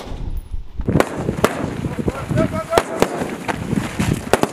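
Rifle shots crack one after another outdoors.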